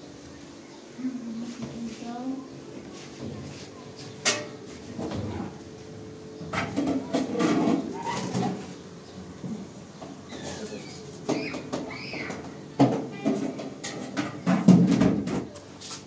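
Dishes and pots clatter.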